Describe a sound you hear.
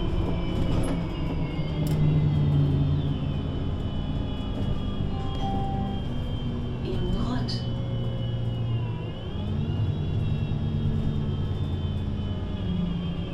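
A bus engine idles close by with a low, steady hum that rises and falls.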